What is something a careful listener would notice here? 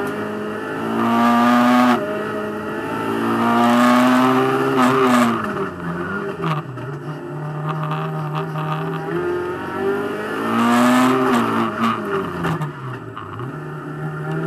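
A racing car engine roars loudly from inside the cabin, revving up and dropping as gears change.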